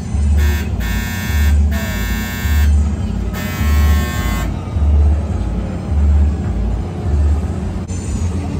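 A fairground ride rumbles with a steady, rhythmic throb as it spins.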